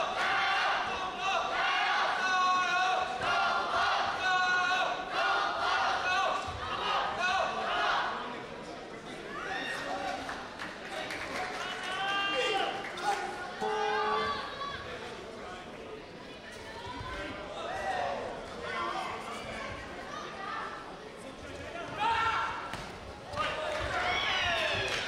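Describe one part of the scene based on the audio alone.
A crowd cheers and chatters in a large echoing hall.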